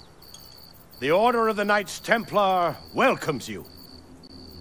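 A man speaks clearly and formally.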